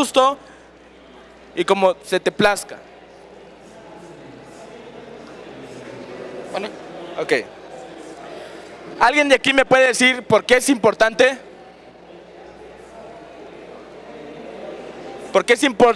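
A young man speaks with animation through a microphone, in a large room with some echo.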